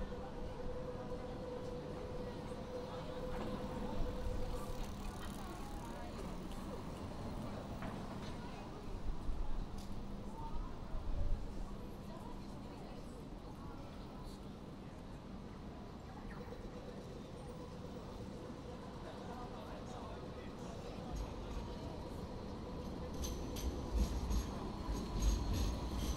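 People murmur and chat in the distance outdoors.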